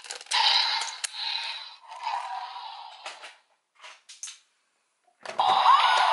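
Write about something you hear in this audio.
Plastic parts click and snap into place.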